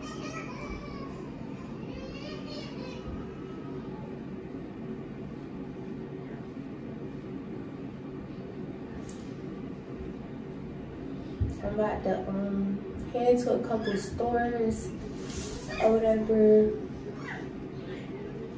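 A young woman speaks calmly close to a microphone.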